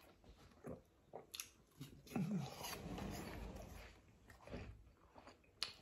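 A middle-aged man chews food close by.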